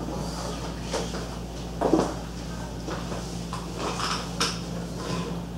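Plastic parts click and knock as a lamp fixture is adjusted by hand.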